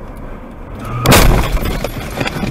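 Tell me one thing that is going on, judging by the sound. A car crashes with a loud impact.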